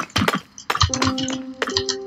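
A stone block crumbles as it is broken.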